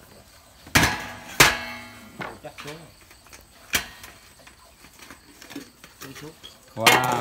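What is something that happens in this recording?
Metal pans clang and ring against a metal tray.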